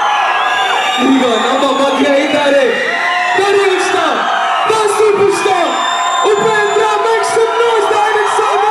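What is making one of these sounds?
A young man talks with animation through a microphone and loudspeakers.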